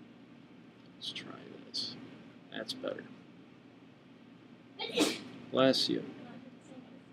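A young woman speaks calmly and close to a microphone, in short phrases.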